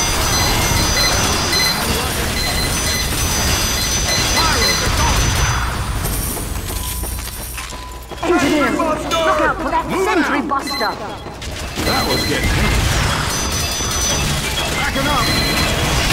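Explosions boom now and then.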